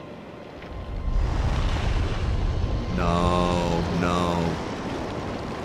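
A huge serpent slithers past with a deep, heavy rumble.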